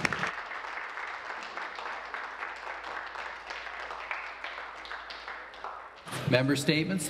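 A crowd applauds and thumps desks in a large hall.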